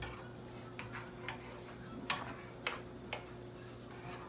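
A spatula scrapes and clicks against a frying pan.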